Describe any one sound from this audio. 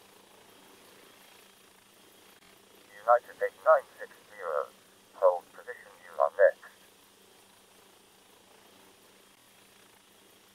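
A helicopter engine hums steadily at idle.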